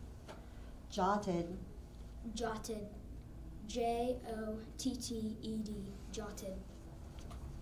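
Another young boy speaks clearly into a microphone.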